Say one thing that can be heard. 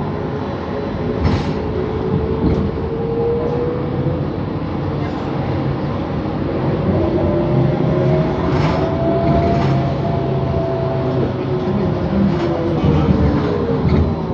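A bus body rattles and clunks over the road.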